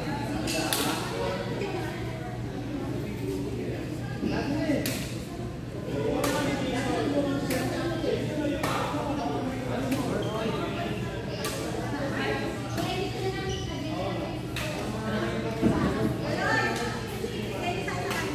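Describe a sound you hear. Shuttlecocks pop sharply off badminton rackets in a large echoing hall.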